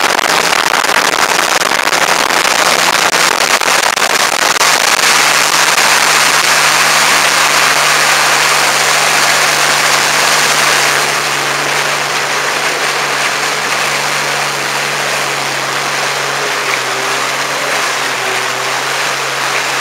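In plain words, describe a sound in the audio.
Water churns and splashes loudly in a boat's wake.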